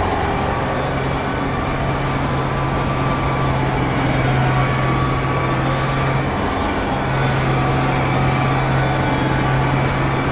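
Tyres hum and rumble on the track.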